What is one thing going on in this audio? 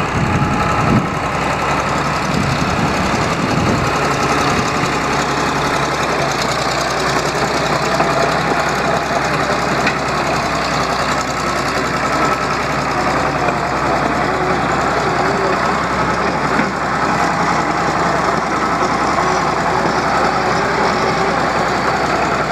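A diesel crawler tractor engine runs.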